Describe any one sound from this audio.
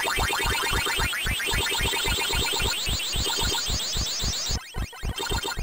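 A high electronic siren warbles up and down in an arcade game.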